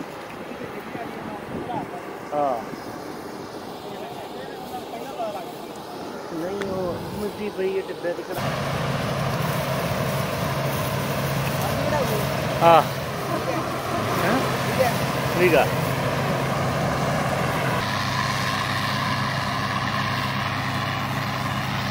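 A combine harvester engine drones steadily nearby.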